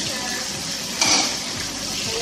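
Metal tongs clack against a pan.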